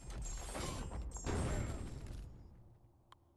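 A game's fight ends with a loud crashing blow and whooshing effects.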